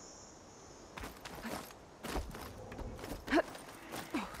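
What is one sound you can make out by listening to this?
Hands and feet knock against a wooden ladder while climbing.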